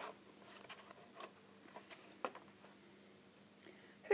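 Pages of a board book turn.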